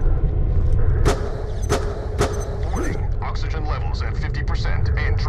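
Short electronic chimes ring as items are picked up.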